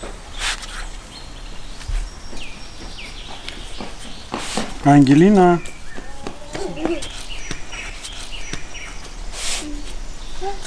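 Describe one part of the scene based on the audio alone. A soft flatbread rustles as it is rolled on a wooden board.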